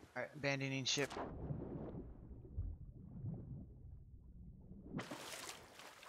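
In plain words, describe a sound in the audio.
Water rushes and bubbles as someone goes under the waves.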